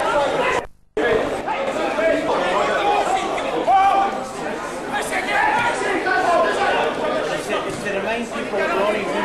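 Men talk and call out close by, outdoors.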